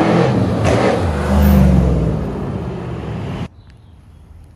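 A large car engine roars loudly as the car drives past close by.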